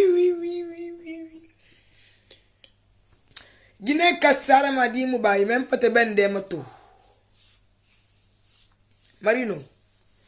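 A young woman sings expressively close by.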